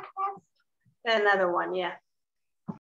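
A young girl speaks in a high voice.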